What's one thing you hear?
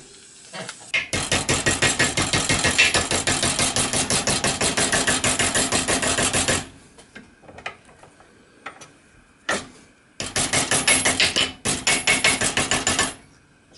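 A metal vise handle turns, clicking and rattling rapidly.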